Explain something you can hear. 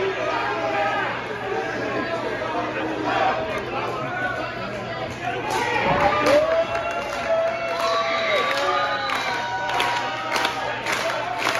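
A crowd of spectators chatters and shouts nearby in an echoing hall.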